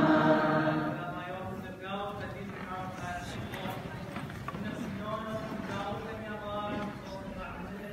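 Men and women talk quietly among themselves in a large echoing hall.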